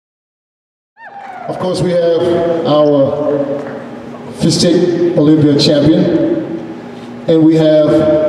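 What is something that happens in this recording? A man speaks with animation through a microphone over loudspeakers in a large echoing hall.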